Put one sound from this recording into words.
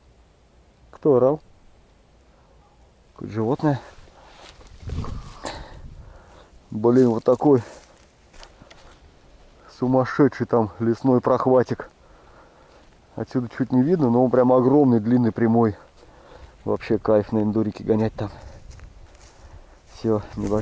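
A man speaks calmly in short bursts, close to the microphone.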